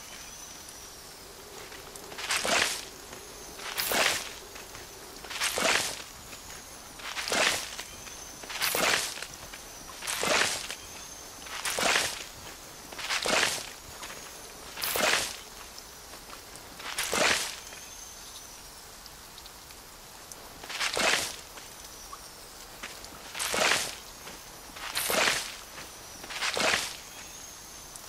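A bright little chime rings as each plant is picked.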